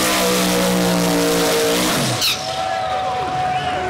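Tyres screech as they spin on the track.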